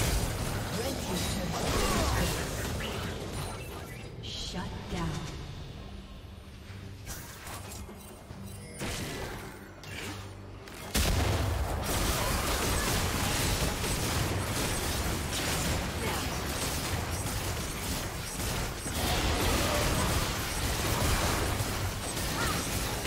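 Fantasy combat effects crackle, whoosh and burst in rapid bursts.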